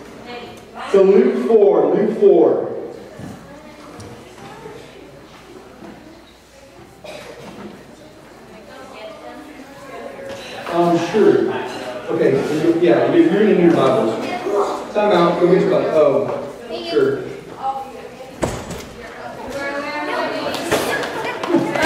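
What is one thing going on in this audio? Young people chatter and talk nearby.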